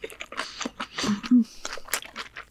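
A woman hums with pleasure while chewing.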